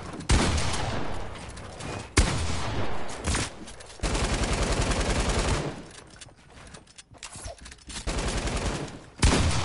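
Building pieces snap into place with quick, loud clattering thuds.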